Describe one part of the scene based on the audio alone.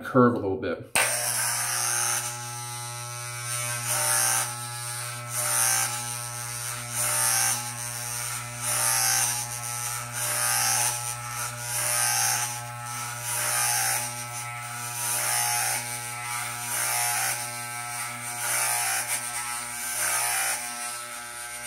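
Electric clippers buzz steadily while trimming a beard.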